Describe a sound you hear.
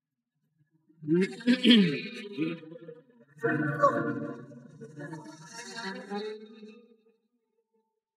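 A man shouts loudly.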